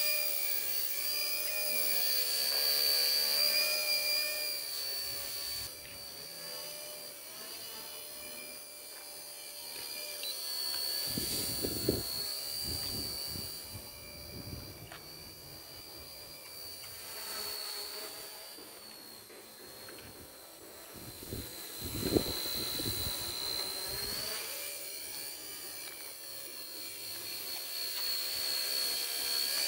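A small model helicopter's motor whines steadily and rises and falls in pitch as it flies.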